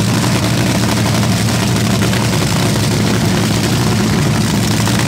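A dragster engine idles with a loud, steady, rough rumble close by.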